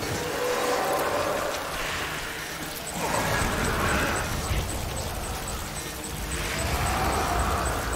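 Rain patters steadily outdoors.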